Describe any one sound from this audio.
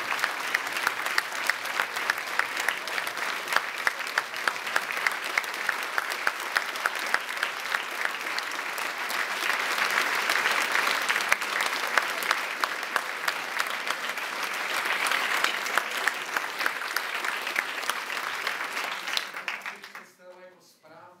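An audience claps loudly and steadily in a large hall.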